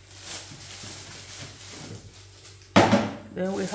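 Cans clink down on a wooden table.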